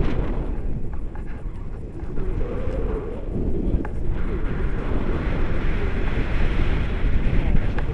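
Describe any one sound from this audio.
Strong wind buffets and roars past a microphone.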